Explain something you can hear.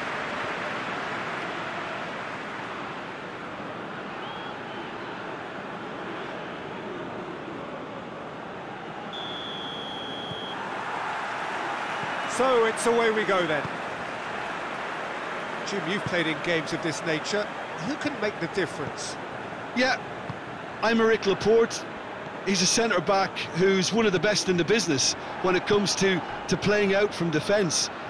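A large stadium crowd roars and murmurs steadily.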